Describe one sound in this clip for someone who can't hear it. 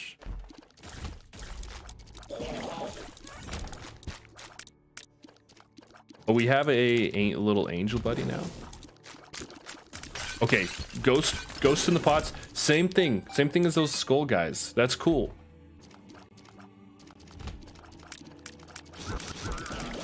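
Video game sound effects pop and splatter rapidly.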